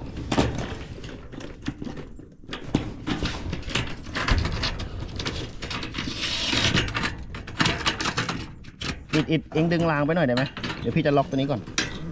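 A metal rail rattles and knocks under a hand.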